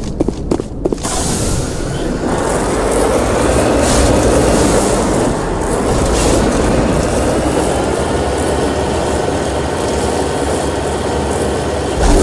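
A vehicle engine roars steadily as it drives.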